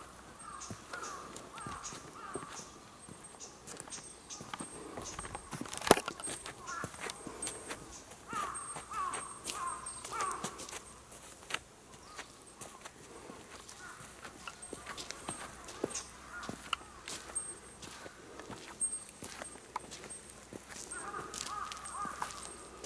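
Footsteps crunch on gravel and stone steps.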